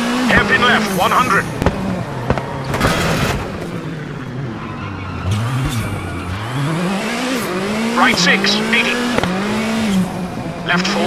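A rally car engine roars and revs up and down through gear changes.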